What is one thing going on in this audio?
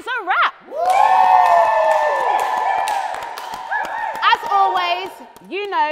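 A woman laughs loudly and cheers.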